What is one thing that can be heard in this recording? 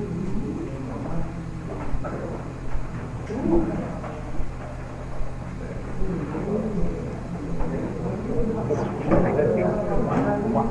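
An elderly man speaks calmly and thoughtfully, heard through a microphone.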